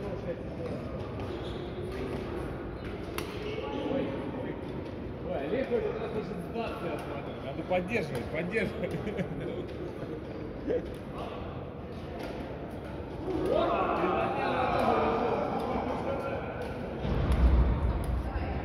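Shoes squeak and patter on a court floor.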